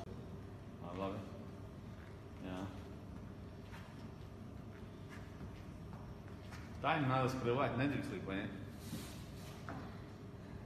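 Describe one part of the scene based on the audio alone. Sneakers step on a hard floor.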